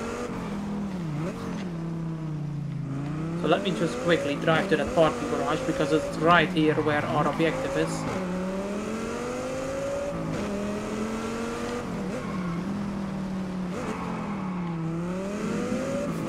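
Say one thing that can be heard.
A car engine hums and revs up and down throughout.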